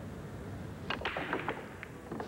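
A cue ball strikes a rack of billiard balls with a sharp crack.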